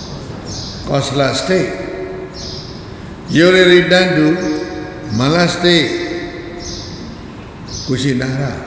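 An elderly man speaks with animation into a microphone, in long drawn-out phrases.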